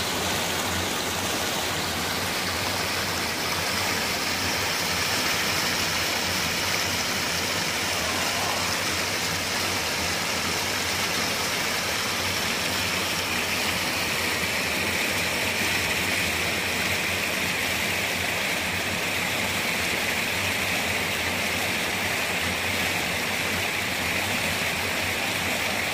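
Water rushes and splashes steadily over a rocky cascade close by.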